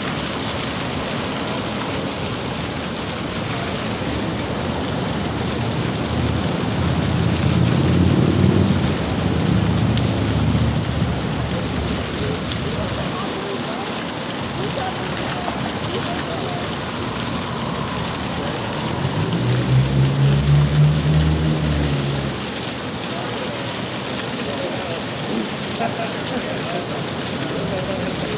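Flames roar and flicker steadily.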